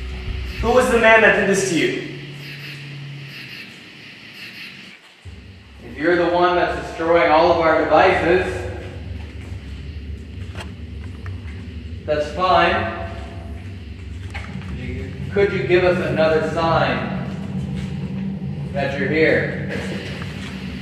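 A young man speaks in a low, hushed voice close by, in an echoing room.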